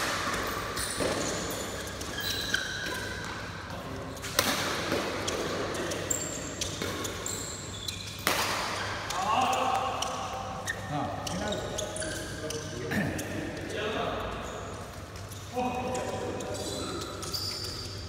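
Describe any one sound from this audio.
Shoes squeak sharply on a hard floor in a large echoing hall.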